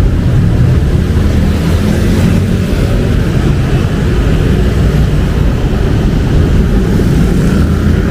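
Motorbikes pass by on the road.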